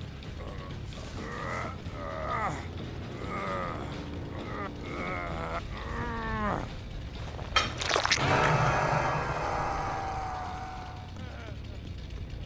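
A man groans and cries out in pain close by.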